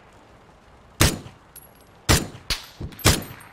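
Rifle shots ring out sharply, several times.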